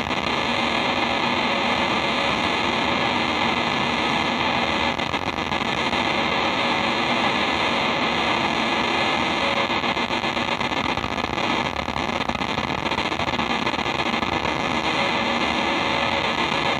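A loud, distorted electric guitar roars through amplifiers in a room.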